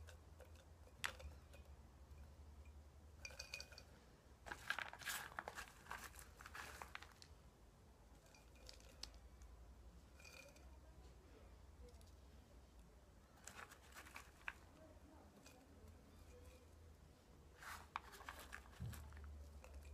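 Bark chips rustle and crunch as a hand presses them into a glass jar.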